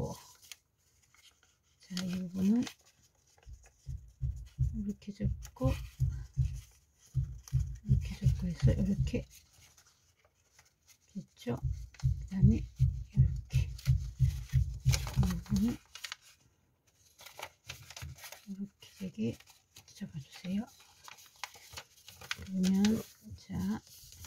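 Paper crinkles and rustles as it is folded by hand.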